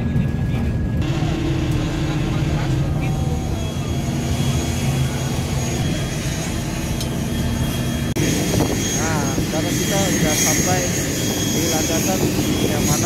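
Aircraft engines hum steadily nearby.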